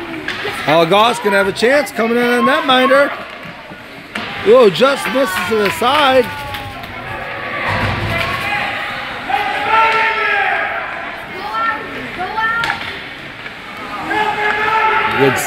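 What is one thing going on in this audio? Ice hockey skates scrape and carve on ice.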